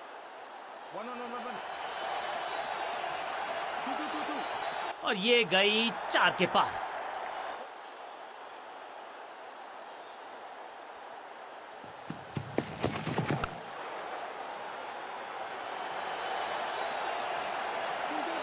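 A large crowd cheers and murmurs in a stadium.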